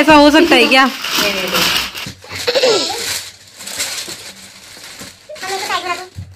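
A plastic wrapper rustles and crinkles.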